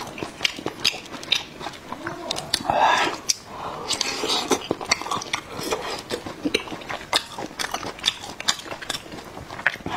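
Chopsticks clink against a bowl.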